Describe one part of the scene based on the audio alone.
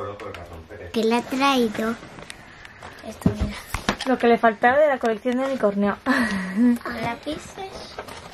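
A young girl talks animatedly close by.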